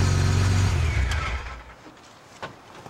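A car engine shuts off and falls quiet.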